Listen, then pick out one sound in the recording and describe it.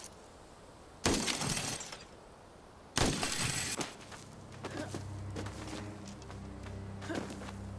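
Loud scraping thuds sound as someone scrambles up a stone wall.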